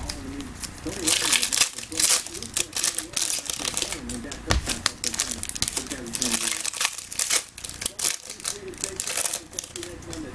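Foil card packs crinkle and rustle as they are torn open.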